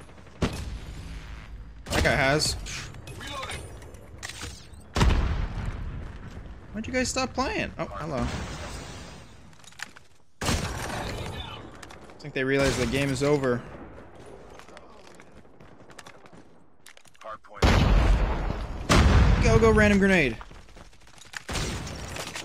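Gunfire bursts out in loud, sharp volleys.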